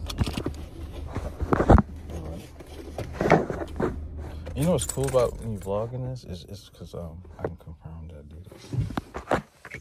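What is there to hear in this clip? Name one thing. A man talks and sings animatedly close by.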